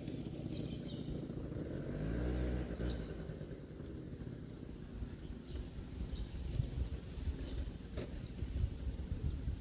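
A small motor scooter hums past nearby.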